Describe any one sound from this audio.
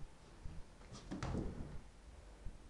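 A cat leaps and lands with a soft thump on a wooden floor.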